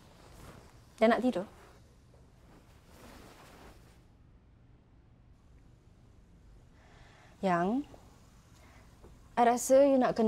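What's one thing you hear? A young woman speaks anxiously, close by.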